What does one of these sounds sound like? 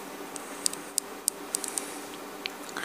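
Small plastic parts click softly as they are handled.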